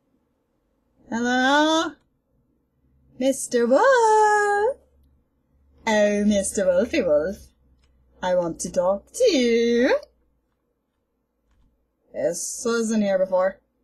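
A young woman speaks with animation into a headset microphone.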